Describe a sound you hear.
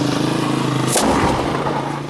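A mortar fires with a loud boom.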